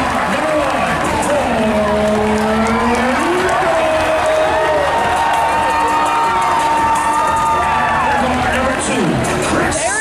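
A crowd chatters and cheers loudly in a large echoing gym.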